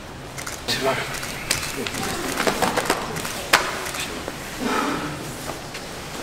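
A man pats another man on the back while hugging.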